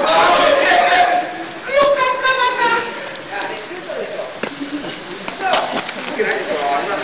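Young players shout and call out to each other across a large echoing hall.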